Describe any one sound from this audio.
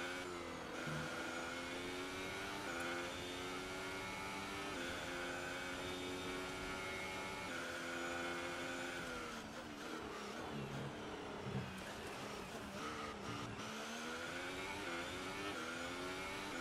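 A racing car engine screams at high revs, rising through the gears and dropping as it brakes.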